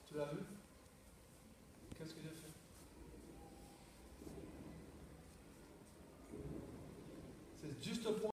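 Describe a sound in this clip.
An adult man speaks calmly, with pauses, in a large echoing hall.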